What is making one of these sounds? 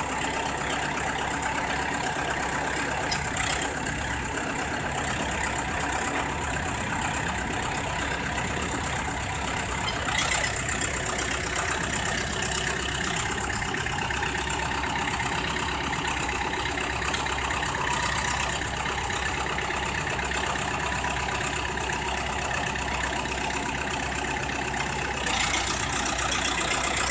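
A bulldozer's diesel engine rumbles and clatters steadily up close.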